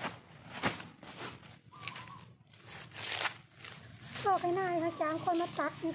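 Dry leaves crunch underfoot.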